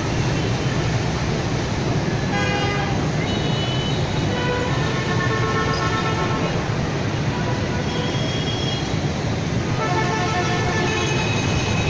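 Heavy traffic of motorbikes and cars hums and roars steadily outdoors.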